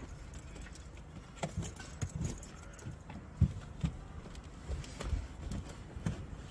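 A woman settles into a car seat with soft thumps and rustling clothes.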